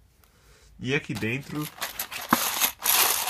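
A paper box rustles and crinkles.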